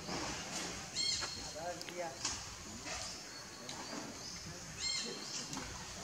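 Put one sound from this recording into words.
A baby monkey squeaks and whimpers close by.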